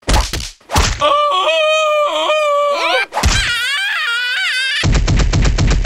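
A cartoon creature cries out in a high squeaky voice.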